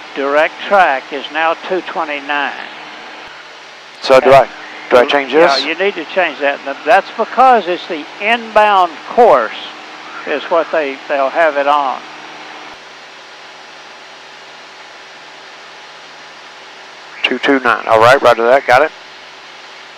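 A man talks calmly over a headset intercom.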